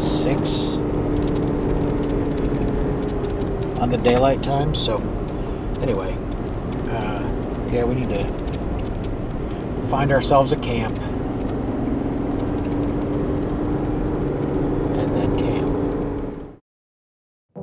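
A vehicle engine hums steadily with road noise from inside the cabin.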